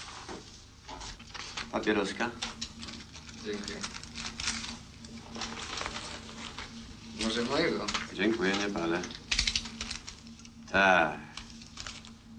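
A second man answers calmly, close by.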